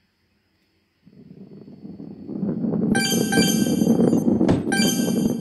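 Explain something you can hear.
A heavy ball rolls along with a loud rumble.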